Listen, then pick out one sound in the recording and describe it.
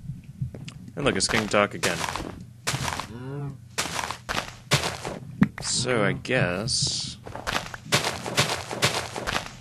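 Dirt crunches as it is dug out block by block.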